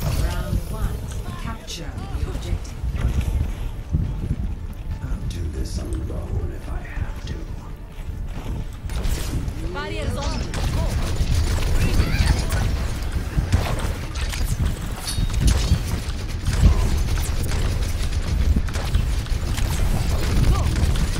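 Heavy metal footsteps thud steadily.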